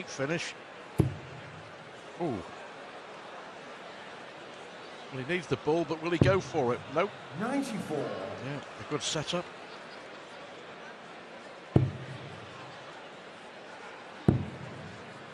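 Darts thud sharply into a dartboard.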